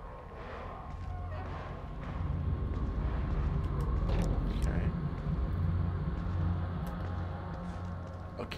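Soft footsteps creep slowly over a hard floor.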